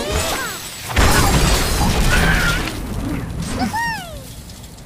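Wooden blocks crash and clatter as a tower collapses.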